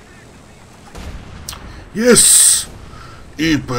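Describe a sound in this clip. A tank cannon fires with a loud blast.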